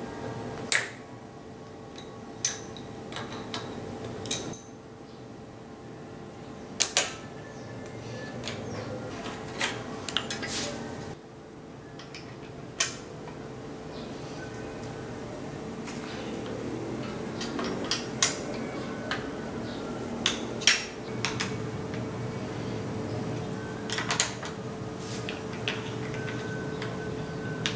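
Metal tools click and clink against bicycle parts.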